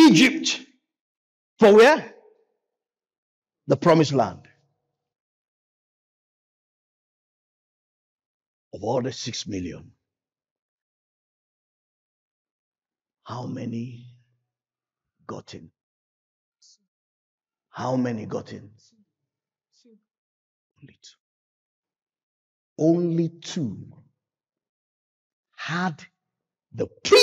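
A man preaches with animation through a microphone, in bursts broken by long pauses.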